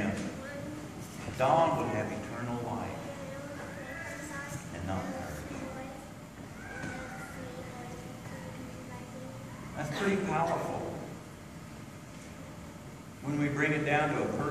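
An older man speaks calmly into a microphone in an echoing hall.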